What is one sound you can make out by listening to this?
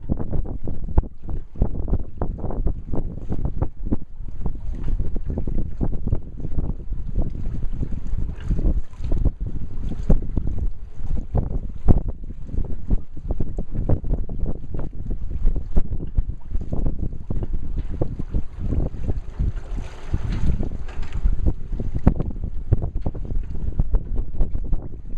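Strong wind buffets outdoors over open water.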